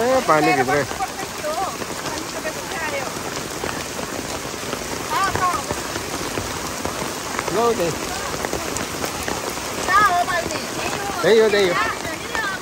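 A woman talks in short bursts close by.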